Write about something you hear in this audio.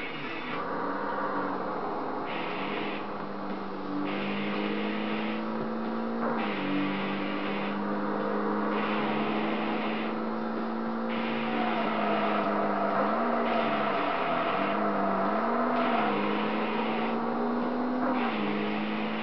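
A racing car engine roars steadily at high revs, its pitch dipping briefly at gear changes.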